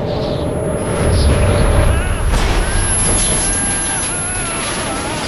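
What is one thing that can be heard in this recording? An explosion booms and rumbles in an enclosed space.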